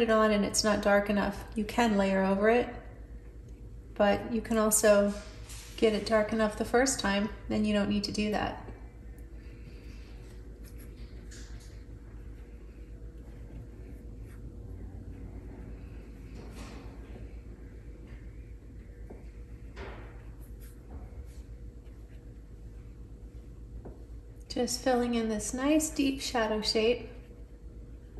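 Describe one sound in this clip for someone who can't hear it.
A paintbrush dabs and strokes softly on paper.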